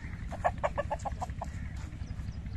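Hens cluck and cackle nearby.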